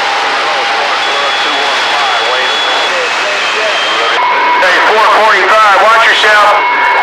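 A shortwave radio whistles and warbles as stations drift in and out.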